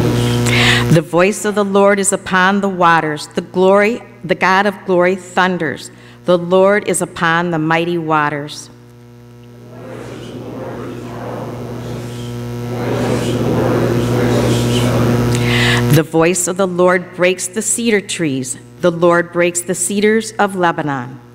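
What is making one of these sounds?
A man sings slowly through a microphone in an echoing hall.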